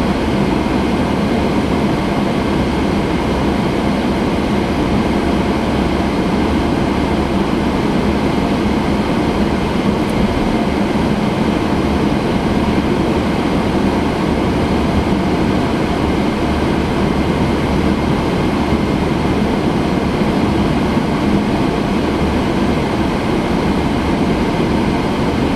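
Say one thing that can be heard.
A car's engine hums steadily while driving.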